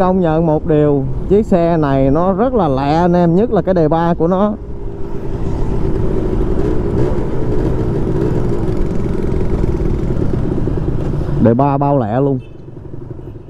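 A motorcycle engine revs up and down, then hums steadily.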